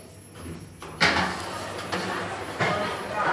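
Elevator doors rumble as they slide open.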